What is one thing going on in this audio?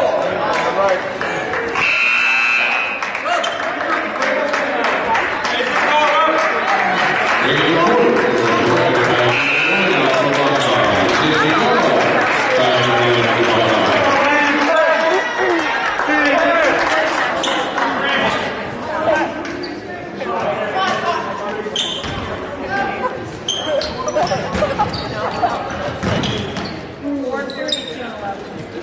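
A crowd of spectators talks and cheers in a large echoing gym.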